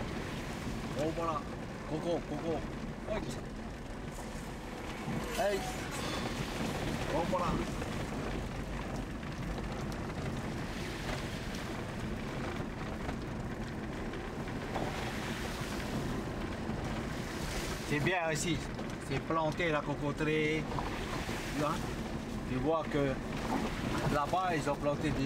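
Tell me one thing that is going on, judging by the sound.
A woman talks casually nearby inside the car.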